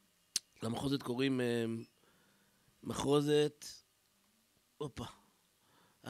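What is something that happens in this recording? A man reads aloud slowly and expressively into a microphone, heard through a loudspeaker.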